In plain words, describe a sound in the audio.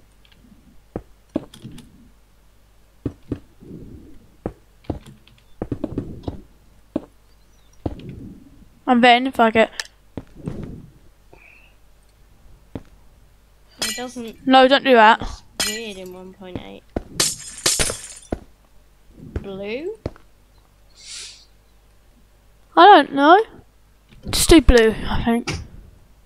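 Blocks are placed with short soft clicks.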